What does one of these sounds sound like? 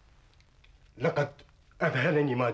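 A second man answers loudly.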